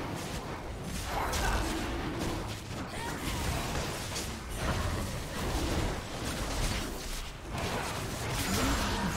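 Sword strikes clang in quick succession.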